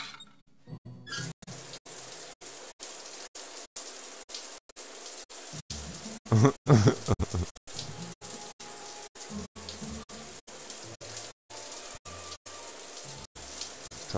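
Water sprays steadily from a shower.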